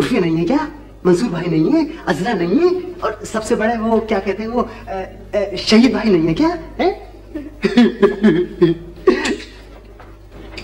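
A young woman talks with animation, heard up close.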